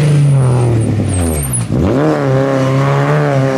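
A car engine roars past close by.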